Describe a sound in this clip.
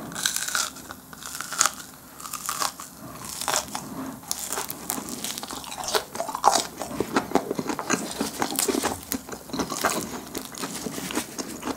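A man chews noisily with his mouth close to a microphone.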